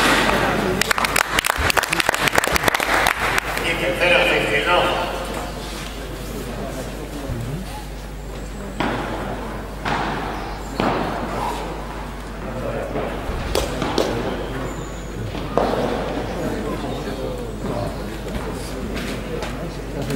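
Tennis balls are struck with rackets and bounce in a large echoing hall.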